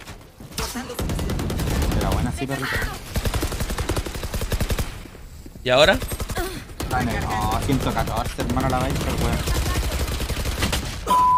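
Gunfire rattles rapidly from a game.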